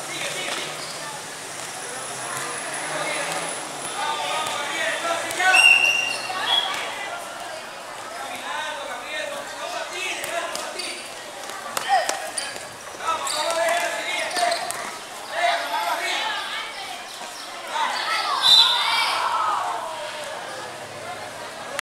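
Children shout and call out across an outdoor court.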